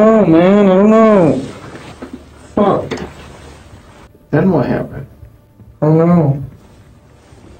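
A young man speaks in a low, strained voice.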